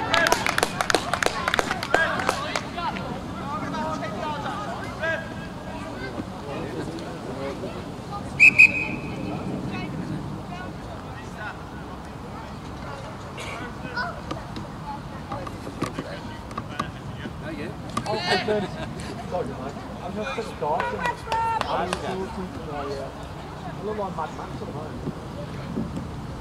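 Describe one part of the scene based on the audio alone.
Men shout to each other across an open outdoor pitch.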